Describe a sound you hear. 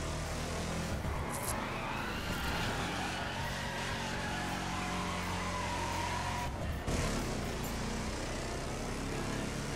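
Car tyres screech while sliding on tarmac.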